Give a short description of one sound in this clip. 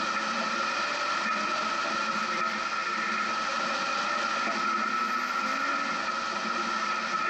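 An engine hums steadily as a vehicle drives slowly.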